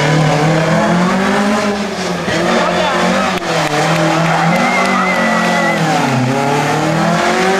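A rally car engine roars loudly and revs up and down through gear changes.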